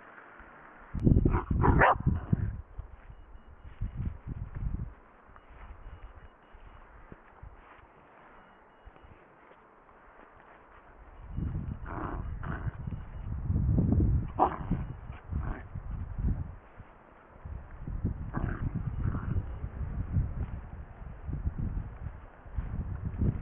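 A small dog growls.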